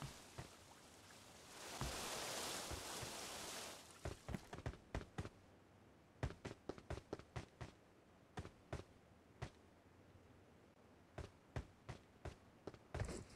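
Footsteps thud on grass as a character runs.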